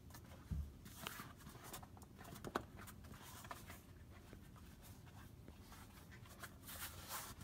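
A rubbery pad rustles and creaks as it is bent by hand.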